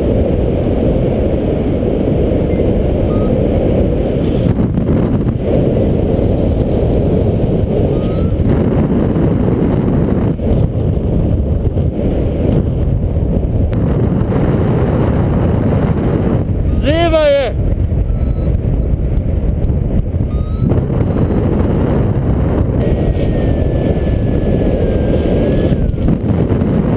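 Strong wind rushes and buffets steadily, outdoors high in the air.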